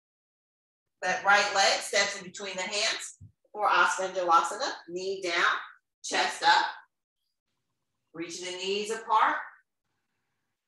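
A woman speaks calmly and clearly, giving instructions close to a microphone, with pauses between phrases.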